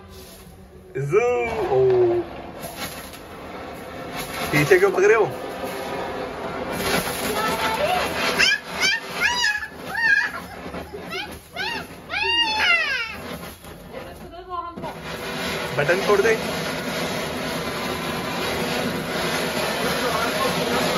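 A handheld firework fountain hisses and crackles loudly as it sprays sparks.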